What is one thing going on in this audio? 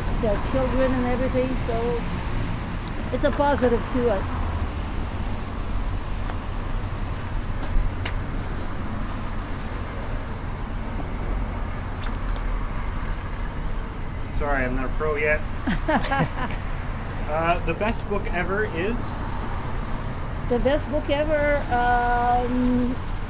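An elderly woman talks calmly close by.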